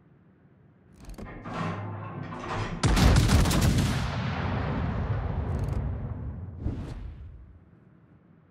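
Heavy ship guns fire in loud, booming blasts.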